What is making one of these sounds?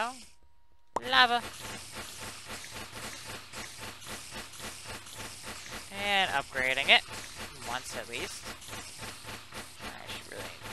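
A game tower fires a rapid stream of small shots.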